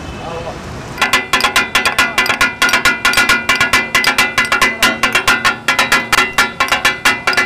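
Metal spatulas clatter rapidly on a hot griddle.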